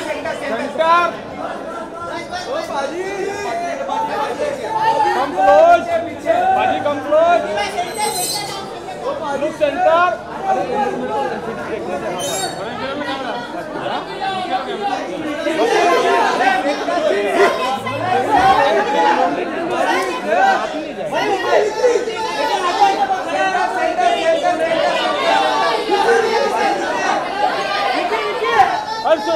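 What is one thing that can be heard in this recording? A crowd of photographers calls out and shouts over one another close by.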